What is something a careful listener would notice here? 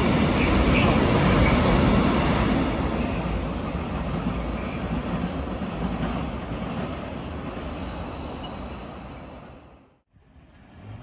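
A long freight train rumbles past and fades into the distance.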